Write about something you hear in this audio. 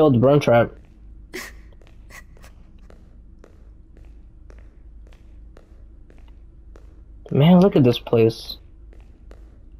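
Footsteps fall slowly on a hard floor.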